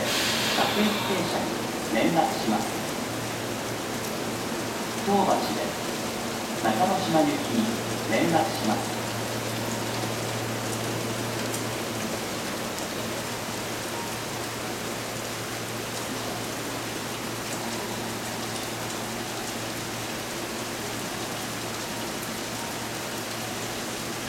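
A parked train hums steadily.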